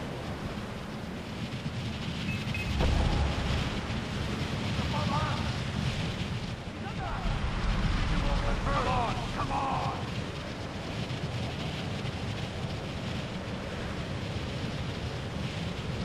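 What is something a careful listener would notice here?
Wind rushes steadily past during a fast glide.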